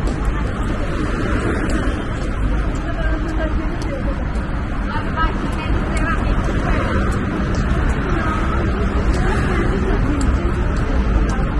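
Men and women talk nearby as they walk past.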